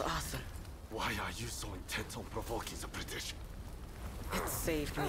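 A man speaks calmly in a low voice, close up.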